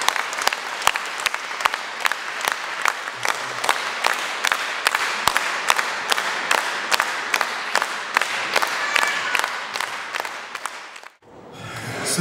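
An audience claps in rhythm in a large hall.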